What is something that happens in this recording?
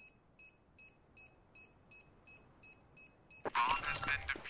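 A game bomb beeps in quick, even pulses while being defused.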